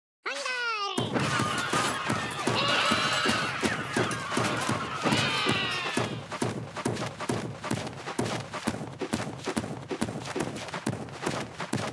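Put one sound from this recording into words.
Many small game figures march and clash with a rapid patter of taps.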